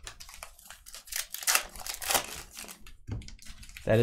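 Card packs rustle and crinkle as they are handled.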